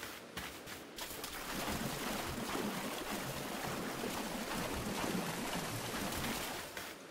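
Feet splash through shallow water.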